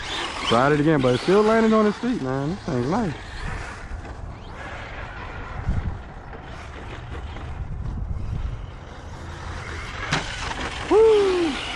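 An electric RC truck drives over grass.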